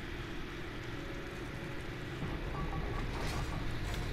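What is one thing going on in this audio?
A heavy metal vault door rumbles open.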